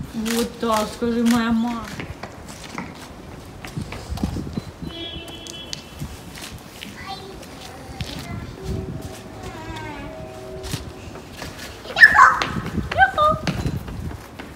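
A young child shouts excitedly nearby.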